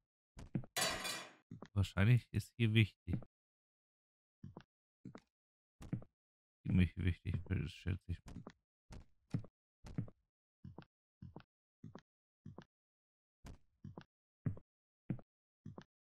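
Footsteps thud on a hard floor at a steady walking pace.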